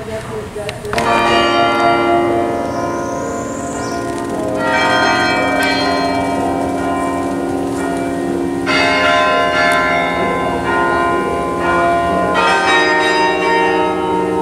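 Carillon bells ring out from a tall tower, playing a slow melody that rings on.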